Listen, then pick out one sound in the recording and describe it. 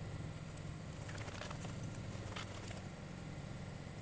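Canvas rustles as a tent collapses.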